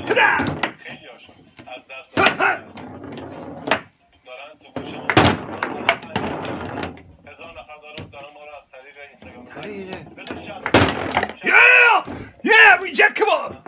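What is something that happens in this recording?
Foosball rods spin and rattle in their sleeves.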